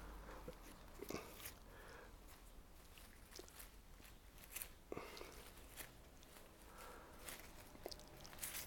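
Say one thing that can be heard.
Pruning shears snip through small twigs.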